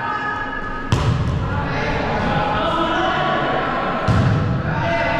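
A volleyball is struck hard by hands in an echoing gym.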